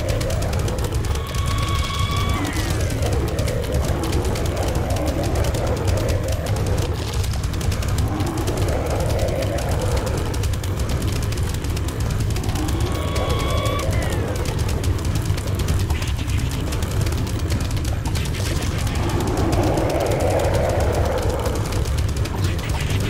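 Low, gurgling monster groans rise and fall now and then.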